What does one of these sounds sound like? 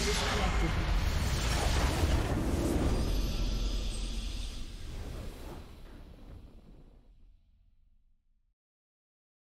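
A triumphant game fanfare swells up and fades away.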